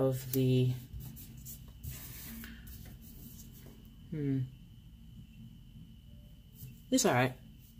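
Paper pages rustle and crinkle as hands flatten them.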